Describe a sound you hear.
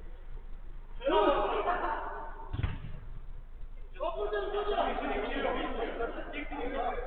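Men shout to each other during a football game, heard from a distance.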